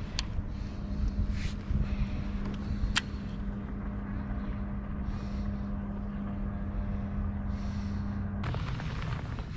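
A fishing reel whirs as its line is wound in.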